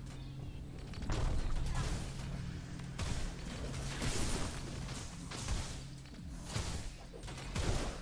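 Magic spells whoosh and boom in a fight.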